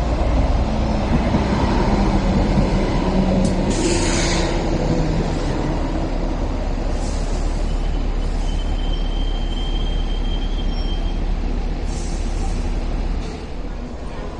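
A train rumbles past on the tracks with a loud, low roar.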